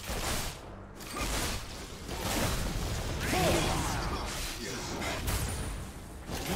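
Video game spells blast and crackle during a fight.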